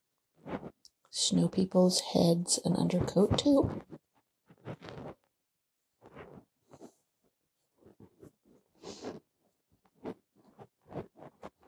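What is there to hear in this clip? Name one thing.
A paintbrush scrubs softly against canvas.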